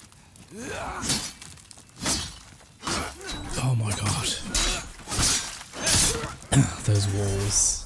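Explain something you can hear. Blades swing and strike in a fight.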